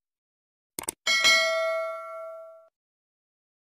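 A bell chimes once and rings out.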